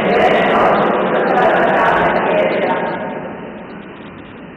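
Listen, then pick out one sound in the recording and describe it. A man chants in a large echoing hall, his voice fading out.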